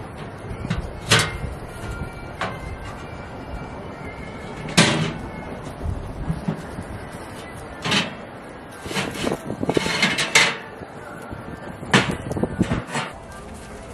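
A small metal stove clanks and knocks.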